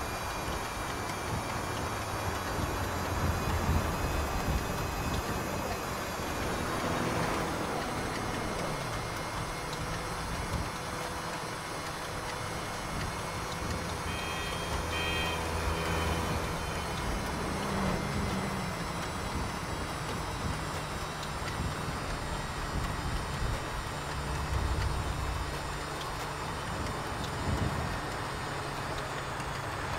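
A scooter engine hums steadily as it rides along.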